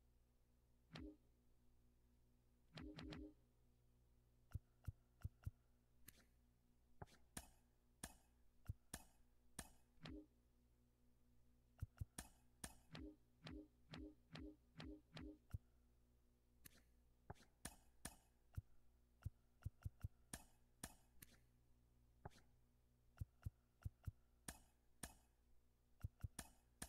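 Short electronic menu clicks tick again and again.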